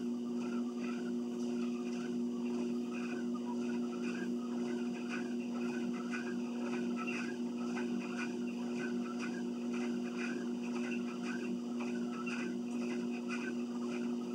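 Footsteps thud on a treadmill belt.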